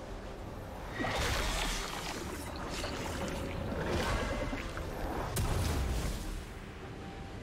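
Magic spells whoosh and crackle in quick bursts.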